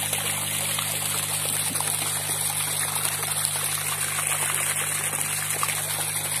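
Water splashes steadily as a jet pours into a pool.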